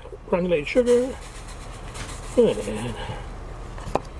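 Coarse salt pours into a bowl with a soft hiss.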